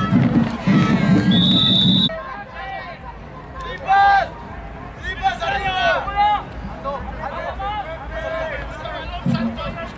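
Young players and spectators shout and call out across an open field.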